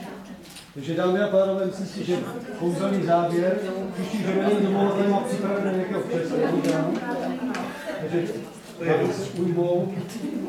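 Several people chatter in the background of an echoing room.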